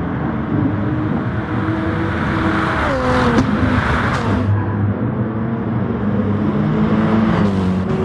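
Racing car engines roar at high revs and shift through gears.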